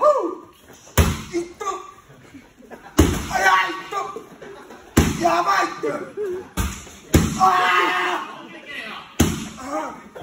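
Kicks smack loudly against a padded shield.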